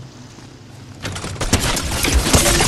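A treasure chest bursts open with a loud, bright shimmering rush.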